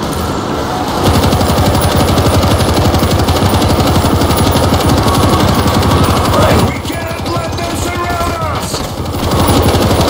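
A heavy machine gun fires long, rapid bursts close by.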